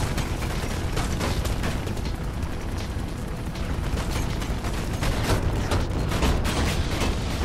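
Footsteps run quickly across a hard surface.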